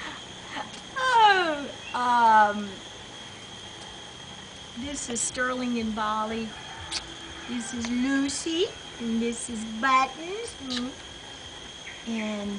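A young woman talks and coos playfully nearby.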